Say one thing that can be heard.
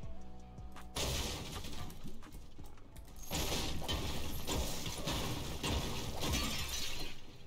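A pickaxe strikes a wall with sharp thuds.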